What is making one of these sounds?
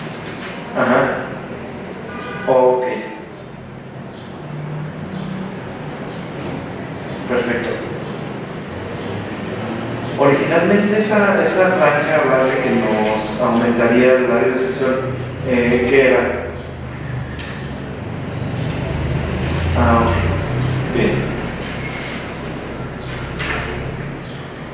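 A woman talks quietly into a phone nearby.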